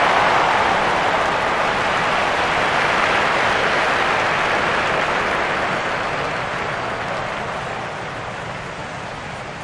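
A crowd murmurs in a large stadium, fading away.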